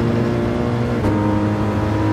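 A racing car engine shifts up a gear with a sudden drop in pitch.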